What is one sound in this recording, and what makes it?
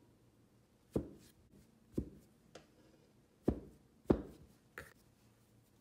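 A knife taps sharply as it cuts through dough onto a mat.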